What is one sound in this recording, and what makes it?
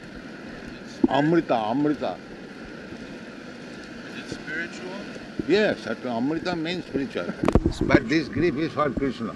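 An elderly man speaks with animation into a microphone, heard on an old recording with hiss.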